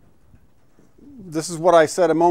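A middle-aged man speaks clearly through a microphone.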